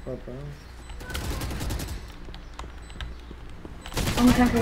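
A rifle fires in short rapid bursts.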